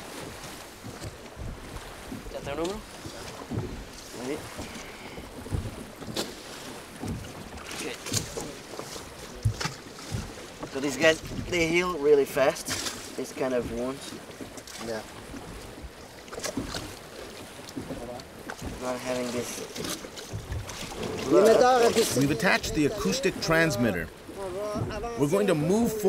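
Water splashes and sloshes against a boat hull.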